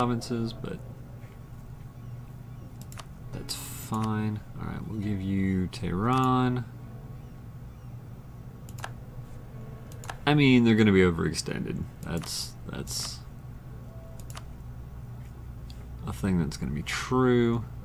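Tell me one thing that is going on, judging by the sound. Soft interface clicks sound as menus open and close.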